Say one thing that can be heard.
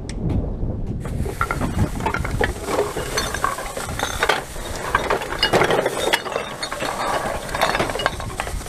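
Plastic bottles crinkle and clatter as a bag is pulled from a pile.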